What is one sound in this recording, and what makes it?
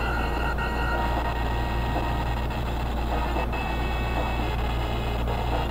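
An electric zap crackles in a video game.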